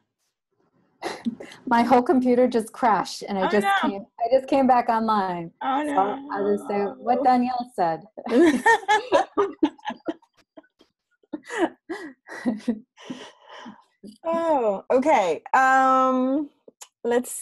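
A woman talks cheerfully over an online call.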